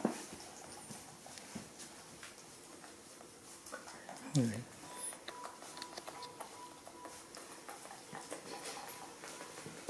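A young woman makes kissing sounds close by.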